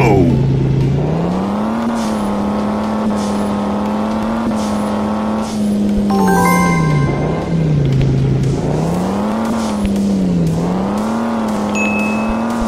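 A racing car engine revs up and down, rising and falling in pitch.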